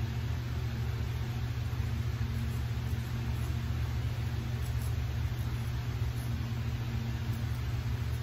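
A razor scrapes softly against stubble.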